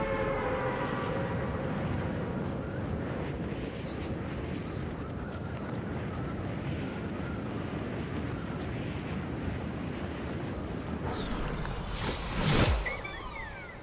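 Wind rushes loudly past during a freefall.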